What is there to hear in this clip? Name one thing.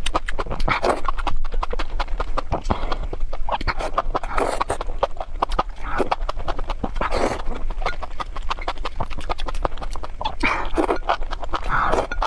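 A young woman chews and crunches food loudly and close up.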